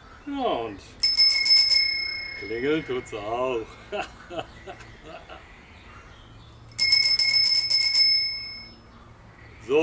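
A bicycle bell rings twice and its ringing fades.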